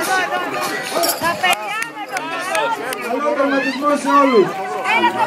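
A large crowd of people shouts and cheers loudly outdoors nearby.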